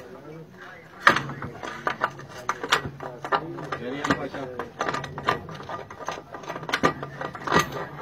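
A metal wrench clanks and knocks against a metal pipe fitting.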